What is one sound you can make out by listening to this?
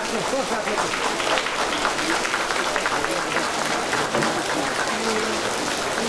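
People applaud.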